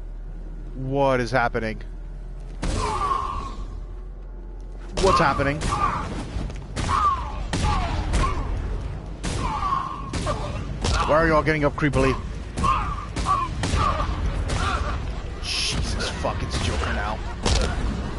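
Men grunt and cry out in pain.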